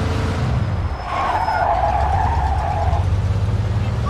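Tyres screech on the road as a car turns sharply.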